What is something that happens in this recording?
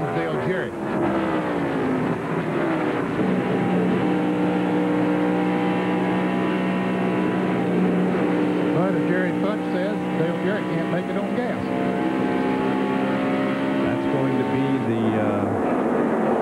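A race car engine roars at high speed with a steady, loud pitch.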